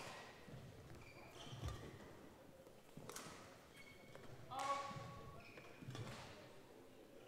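A shuttlecock is struck sharply with a racket in an echoing hall.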